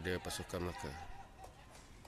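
A ball is kicked hard with a thud.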